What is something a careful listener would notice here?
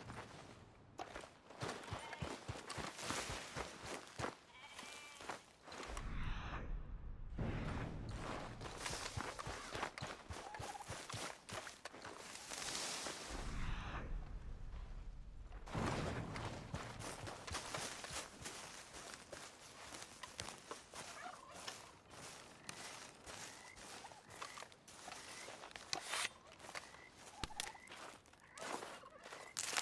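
Leaves and branches rustle as a body brushes through them.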